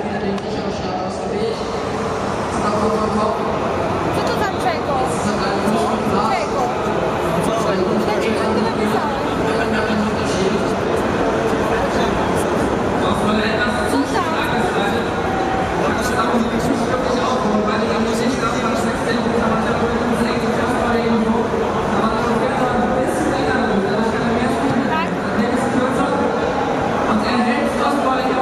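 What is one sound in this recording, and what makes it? A crowd chatters loudly all around in a large echoing hall.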